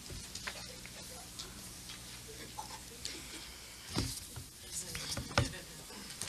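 A small audience murmurs and stirs quietly in a room.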